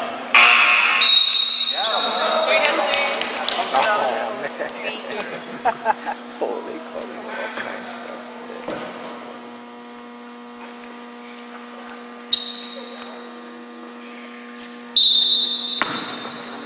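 A referee blows a sharp whistle in an echoing gym.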